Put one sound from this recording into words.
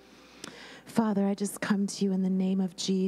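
A woman sings into a microphone, holding long notes.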